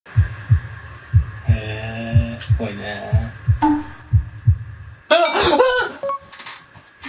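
A young man speaks close by.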